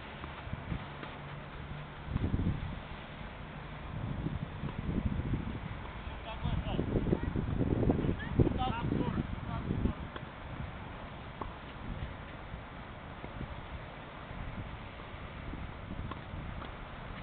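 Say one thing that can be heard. A tennis ball is hit back and forth with rackets at a distance.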